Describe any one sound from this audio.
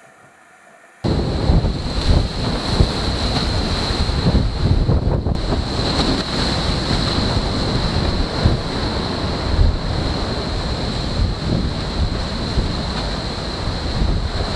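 Waves rush and spray past a fast-moving boat.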